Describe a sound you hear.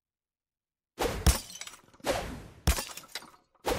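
A toy gun fires with short sharp cracks.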